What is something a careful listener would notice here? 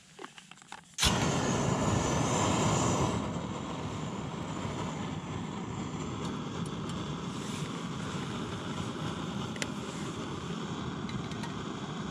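A camping stove roars steadily.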